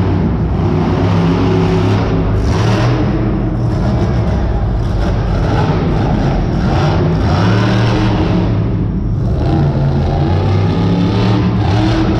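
A crowd cheers and shouts throughout.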